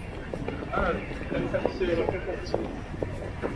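A young man talks casually nearby, outdoors.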